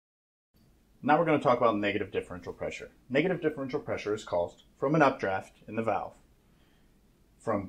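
A man speaks calmly and clearly to the listener, close to a microphone.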